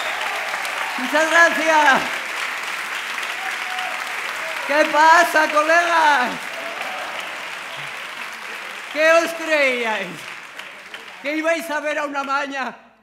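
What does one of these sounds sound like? A woman speaks with animation into a microphone, heard through loudspeakers in a large hall.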